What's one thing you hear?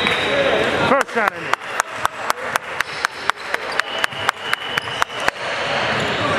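A basketball bounces repeatedly on a wooden floor in an echoing gym.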